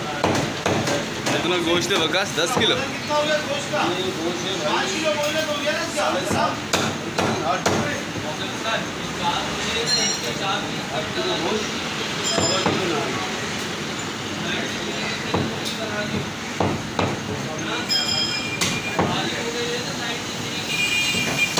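A cleaver chops meat on a wooden block with sharp, repeated thuds.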